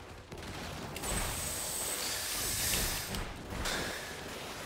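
Game sound effects whoosh and burst during fighting.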